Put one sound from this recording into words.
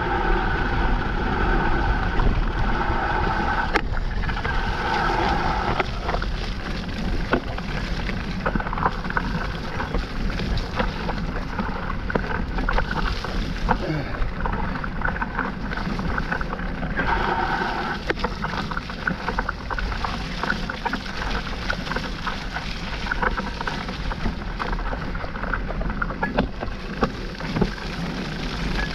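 Bike tyres roll and crunch over a dirt trail.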